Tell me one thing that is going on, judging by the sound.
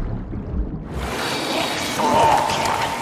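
Water splashes and drips as a swimmer climbs out.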